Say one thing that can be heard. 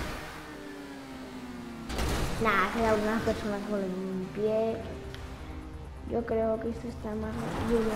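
A car crashes and tumbles over the ground.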